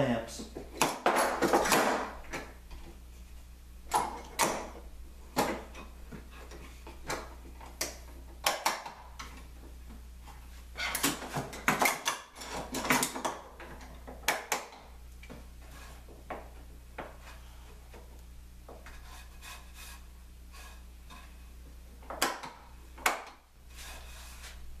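Metal clamps click as they are tightened and adjusted.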